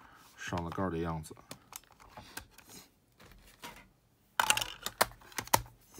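A plastic lid creaks open.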